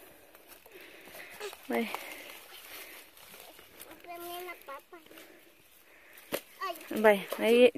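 A stick scrapes and digs into dry leaves and soil.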